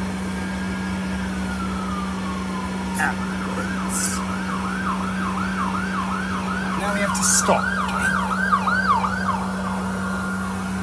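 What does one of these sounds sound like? A police siren wails and yelps nearby.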